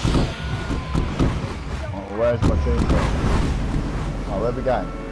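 A rush of wind roars during a fall through the air.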